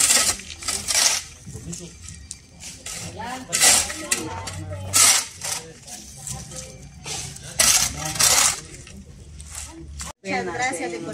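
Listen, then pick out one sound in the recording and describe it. A shovel scrapes and scoops through ash and debris.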